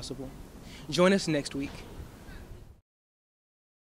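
A young man speaks close by, with animation.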